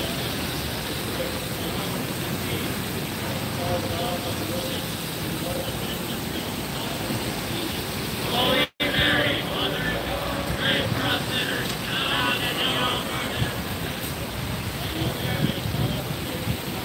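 A crowd prays aloud in unison some distance away, outdoors.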